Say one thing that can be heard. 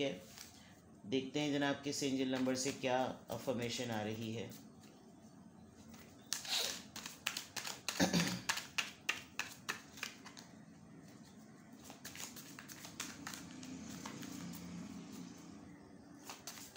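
Cards riffle and flick as a deck is shuffled by hand.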